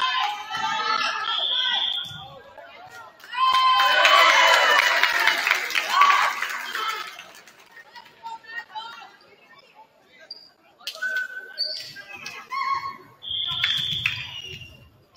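Young women shout and call out in a large echoing gym.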